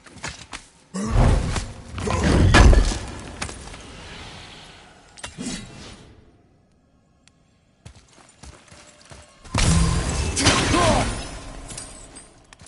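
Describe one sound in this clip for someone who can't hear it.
An axe smashes through wooden crates with loud cracking crashes.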